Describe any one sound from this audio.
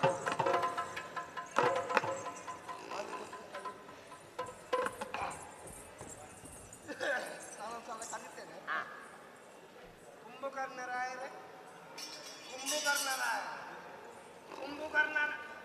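A drum is beaten in a rhythm.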